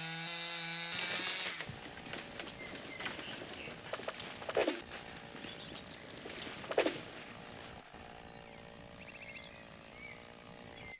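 A chainsaw roars as it cuts through wood.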